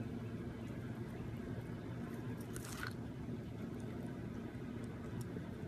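A cat gnaws and crunches on a cob of corn.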